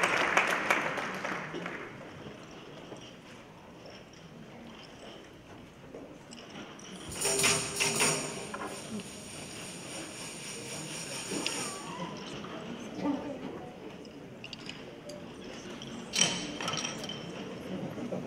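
A large children's choir sings in an echoing hall.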